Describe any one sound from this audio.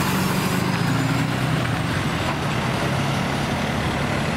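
A fire truck's diesel engine rumbles loudly close by as it drives past.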